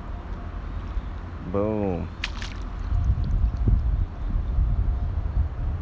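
Feet splash and wade through shallow water.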